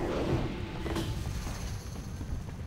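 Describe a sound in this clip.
A magic spell bursts with a fiery whoosh.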